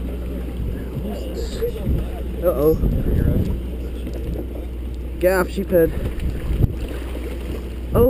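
Water splashes against the side of a boat.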